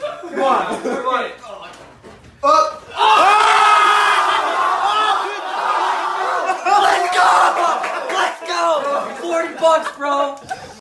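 People cheer and shout excitedly nearby.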